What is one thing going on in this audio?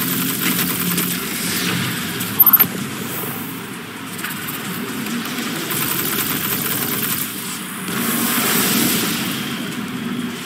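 A man talks calmly into a computer microphone.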